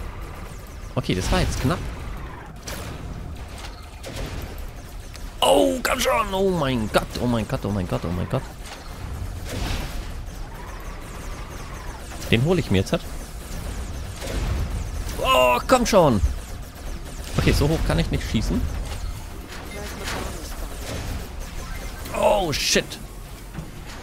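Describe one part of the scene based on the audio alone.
Weapons fire with sharp electronic zaps and blasts.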